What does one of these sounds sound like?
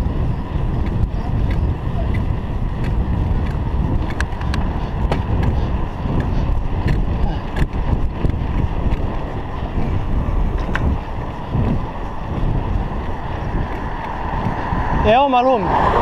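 Wind rushes over the microphone on a moving bicycle.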